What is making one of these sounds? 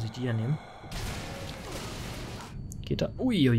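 An explosion booms in a game.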